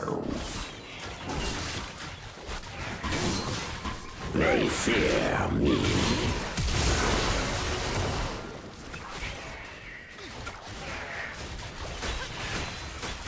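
Game sword swings and magic effects clash in quick bursts.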